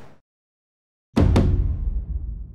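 A martial arts uniform snaps sharply with a fast kick.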